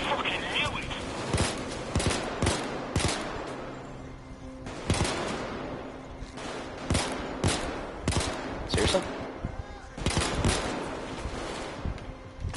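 Pistol shots fire in rapid bursts.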